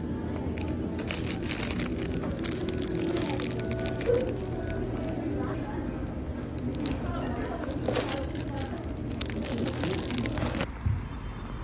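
A plastic bag crinkles loudly in a hand.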